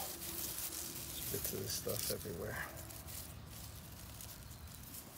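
A hand rustles through dry grass.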